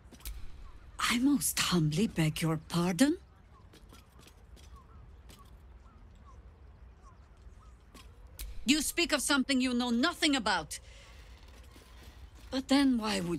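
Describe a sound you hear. A woman speaks sharply and with disdain, close by.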